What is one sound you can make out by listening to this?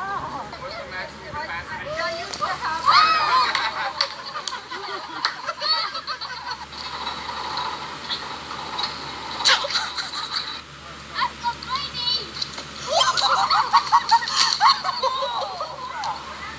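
People shout and laugh excitedly outdoors.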